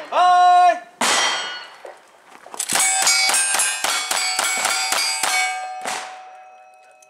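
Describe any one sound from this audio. A lever-action rifle fires rapid shots outdoors.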